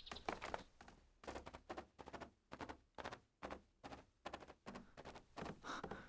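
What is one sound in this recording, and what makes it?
Footsteps tap quickly across a hard floor.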